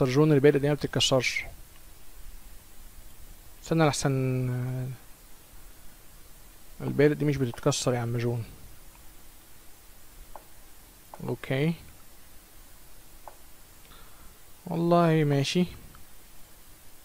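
A man talks with animation into a close microphone, in short bursts.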